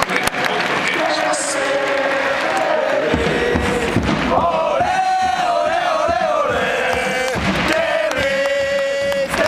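A large crowd sings and chants loudly in a big echoing stadium.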